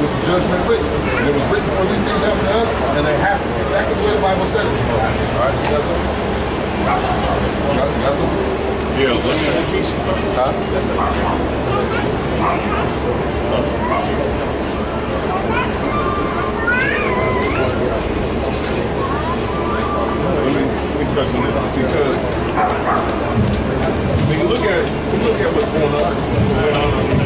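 Men talk nearby in a busy outdoor crowd.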